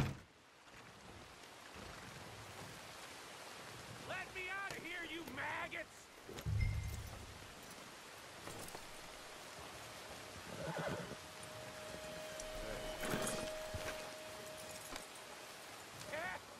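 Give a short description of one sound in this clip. A horse's hooves clop on soft ground.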